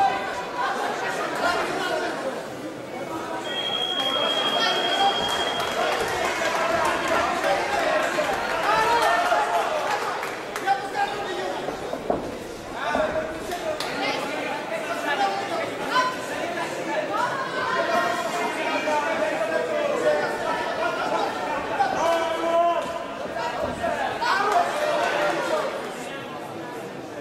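A crowd of spectators cheers and shouts throughout a large echoing hall.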